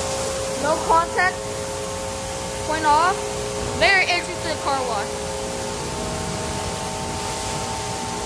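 Car wash brushes spin with a steady mechanical hum.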